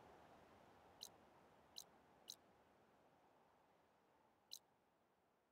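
Short, soft interface ticks sound a few times.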